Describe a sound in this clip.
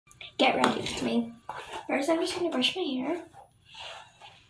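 A young girl talks close by with animation.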